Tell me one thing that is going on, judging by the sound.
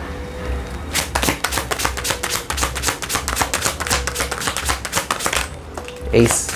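Playing cards riffle and flick rapidly as they are shuffled.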